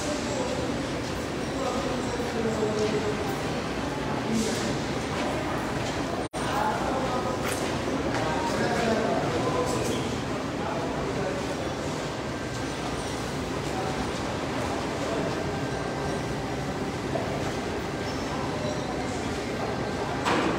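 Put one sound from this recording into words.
A woman talks with animation, her voice echoing in a bare concrete building.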